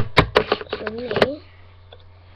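Cardboard boxes knock and scrape as a hand moves them.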